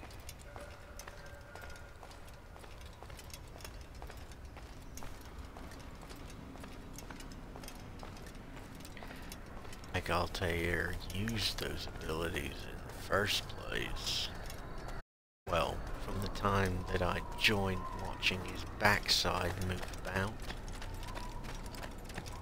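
Footsteps tap on stone at a steady walking pace.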